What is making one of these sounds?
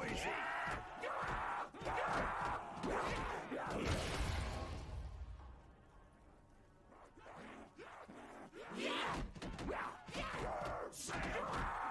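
Monsters growl and snarl close by.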